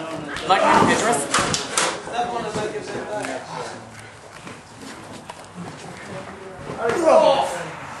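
Bodies thud onto a padded floor.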